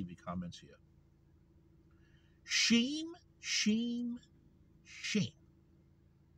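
A middle-aged man speaks close to the microphone in short bursts.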